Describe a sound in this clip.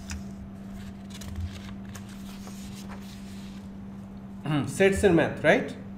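Sheets of paper rustle as pages are turned.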